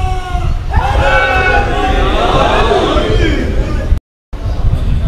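A man recites loudly in a singing voice through a microphone and loudspeakers.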